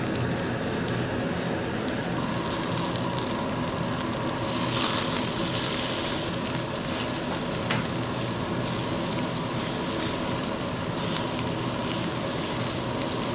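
Metal tongs click against the grill.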